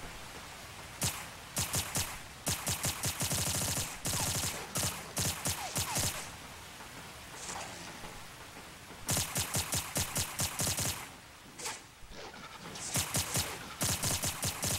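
Quick footsteps run on a hard metal floor.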